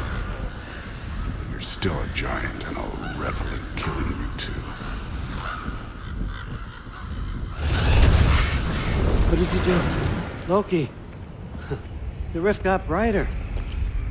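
A young man talks calmly into a microphone, close by.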